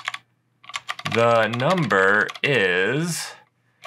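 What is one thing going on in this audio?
A man speaks in a drawn-out, sing-song voice close to a microphone.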